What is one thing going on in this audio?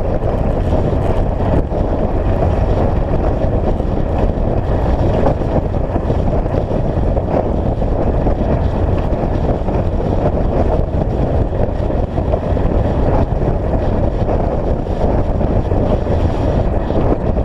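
Tyres crunch and rumble steadily over a gravel road.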